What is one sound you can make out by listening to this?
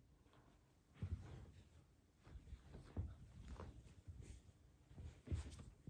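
A rug rustles and thumps softly as it is folded over.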